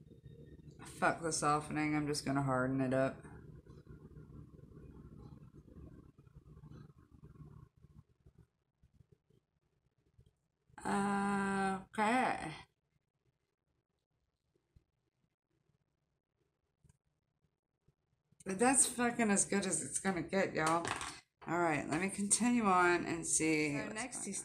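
A woman talks with animation, close to a microphone.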